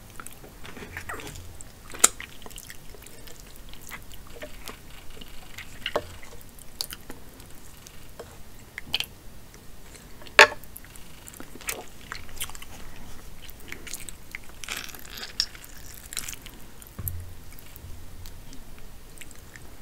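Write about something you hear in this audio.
Hands crack and pull apart crab shell close to a microphone.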